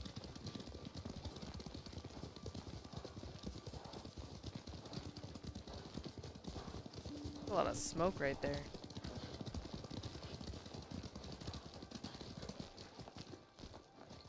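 Horses' hooves thud steadily on a dirt path.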